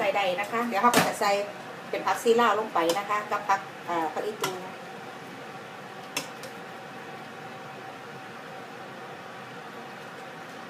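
A metal spoon clinks and scrapes against a pot while stirring.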